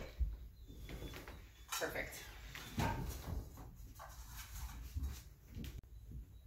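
A dog's paws patter across a floor.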